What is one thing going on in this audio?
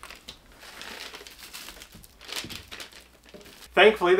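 Plastic wrapping rustles under hands.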